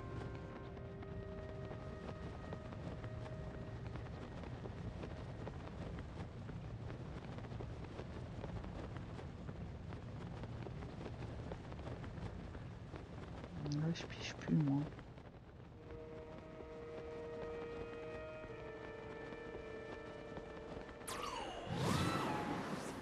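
Wind rushes steadily past during a glide through the air.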